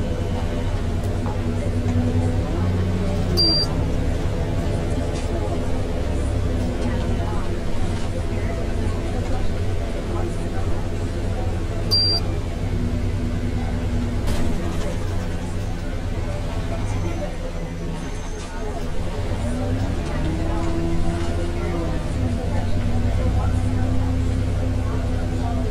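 A bus engine hums steadily, rising and falling in pitch as the bus speeds up and slows down.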